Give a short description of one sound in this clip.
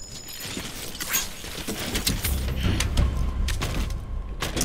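Heavy metal gear clanks and rattles as a figure climbs up.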